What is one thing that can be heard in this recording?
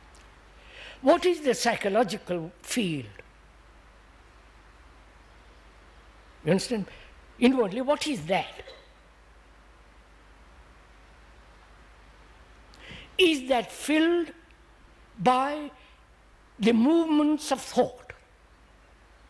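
An elderly man speaks slowly and thoughtfully into a microphone, in short phrases with pauses.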